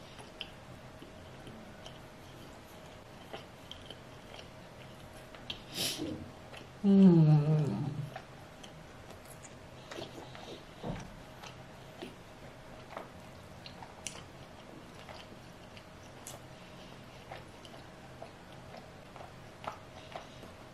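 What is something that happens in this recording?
A young woman chews food with soft, wet smacking sounds close to a microphone.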